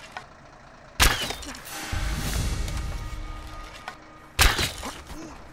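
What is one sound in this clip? A bowstring twangs sharply as an arrow is loosed.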